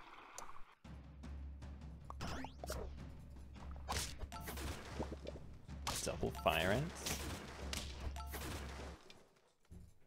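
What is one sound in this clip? Short cartoon battle sound effects play with quick thuds and pops.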